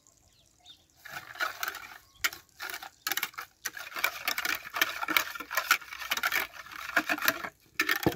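A whisk beats eggs briskly in a plastic bowl.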